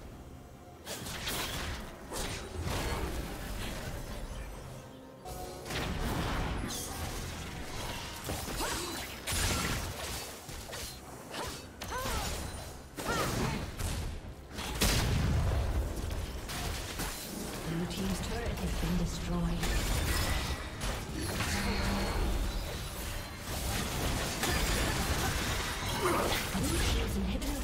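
Magic blasts crackle and boom in a fast battle.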